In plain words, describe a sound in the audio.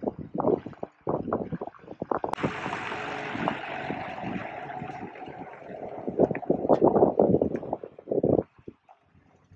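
A pickup truck drives up slowly, pulling a rattling trailer.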